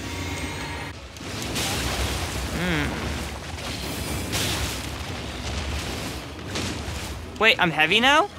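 A huge beast growls and thrashes close by.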